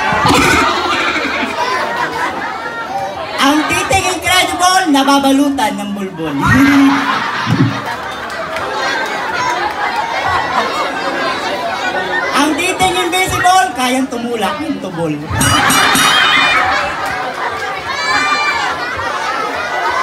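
A person sings into a microphone, heard through loudspeakers.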